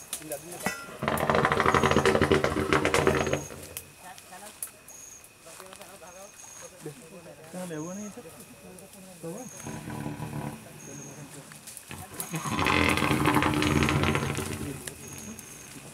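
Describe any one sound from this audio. Men talk loudly close by.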